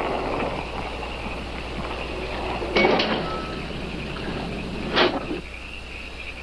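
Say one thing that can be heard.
A car engine idles, then cuts off.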